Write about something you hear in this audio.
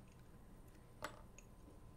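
A metal part clinks sharply on a hard surface.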